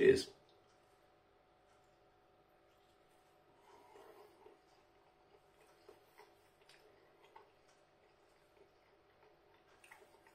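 A man chews food close by.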